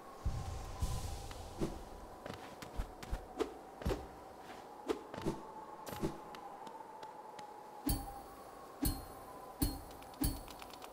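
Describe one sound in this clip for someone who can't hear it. Soft thuds and taps sound as a small game character runs and lands.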